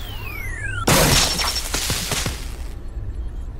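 Sparks burst with a sharp electric crackle.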